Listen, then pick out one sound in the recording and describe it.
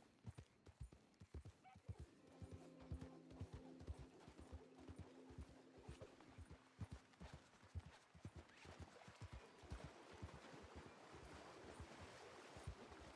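A horse gallops, its hooves thudding steadily on soft ground.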